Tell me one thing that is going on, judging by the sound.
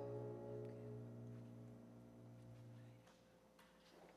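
A band's sustained chord rings out and fades away.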